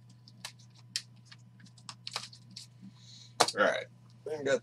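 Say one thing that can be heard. Plastic card sleeves click and rustle as hands shuffle through them.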